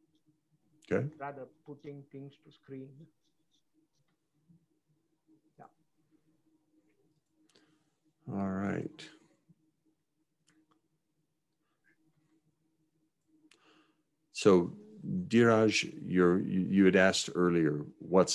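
A man talks calmly into a microphone, heard close up, in short bursts with pauses.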